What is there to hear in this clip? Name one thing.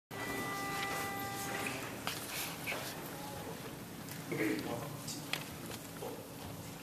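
A choir of young men and women sings together through microphones in a large hall.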